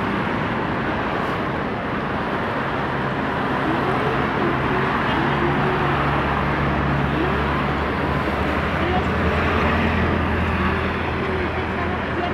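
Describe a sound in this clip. Cars drive past on a busy road nearby.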